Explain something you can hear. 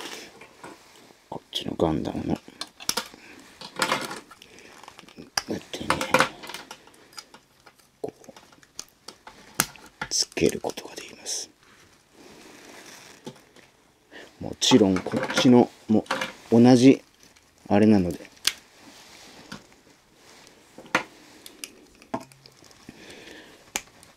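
Plastic toy parts click and clatter as they are handled.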